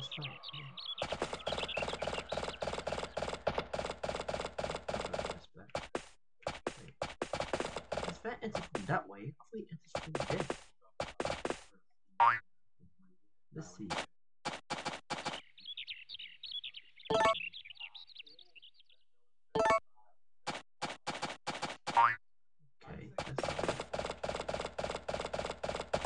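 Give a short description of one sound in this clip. A horse's hooves clop steadily at a trot.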